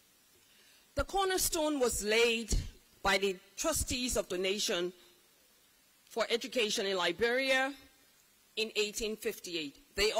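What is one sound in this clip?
A woman speaks into a microphone, heard through loudspeakers in a large hall.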